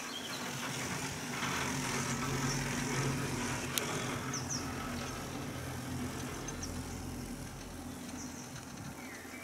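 A chairlift hums and rumbles steadily along its cable outdoors.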